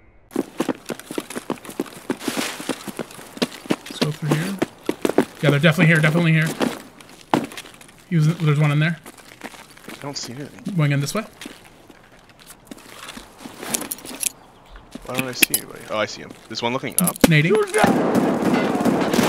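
Footsteps crunch on gravel and concrete.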